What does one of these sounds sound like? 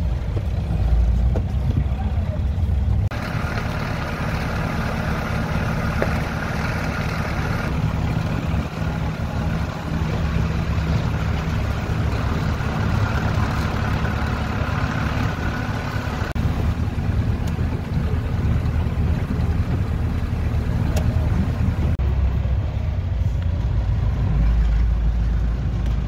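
Tyres crunch and roll over a wet gravel road.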